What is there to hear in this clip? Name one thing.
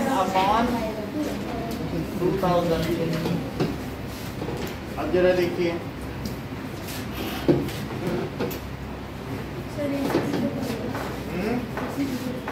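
A man speaks calmly, explaining, close by.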